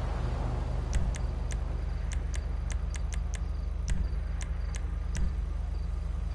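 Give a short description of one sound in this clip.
Soft menu clicks tick in quick succession.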